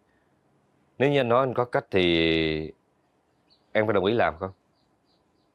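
A man speaks calmly and earnestly, close by.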